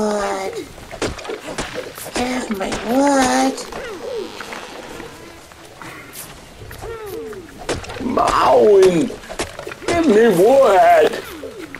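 A stone hatchet chops into a tree trunk with dull thuds.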